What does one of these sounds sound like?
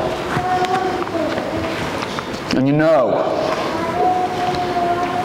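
A man sings with sustained notes in a large echoing hall.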